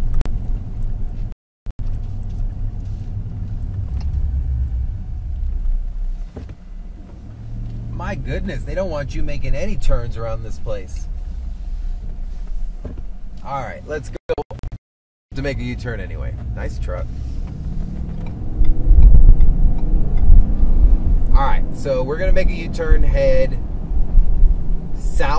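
A car engine hums and tyres rumble on the road from inside the car.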